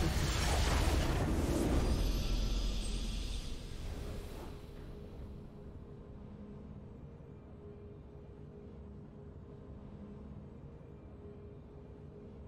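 A short victory fanfare plays, then fades to a quiet hum.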